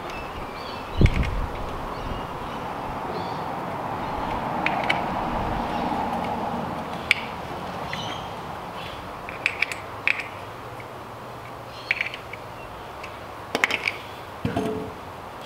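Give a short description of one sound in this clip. Metal parts of a scooter click and clink as they are worked on by hand.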